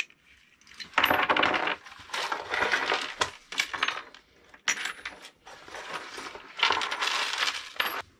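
Washers and nuts rattle and jingle as they are poured and sorted from a box.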